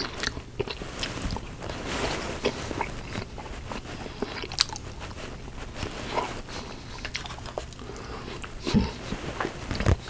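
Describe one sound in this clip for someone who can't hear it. A man chews food noisily.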